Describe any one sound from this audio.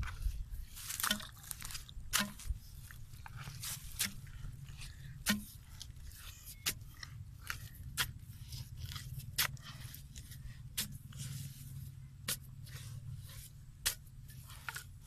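A stick scrapes and thuds into wet mud.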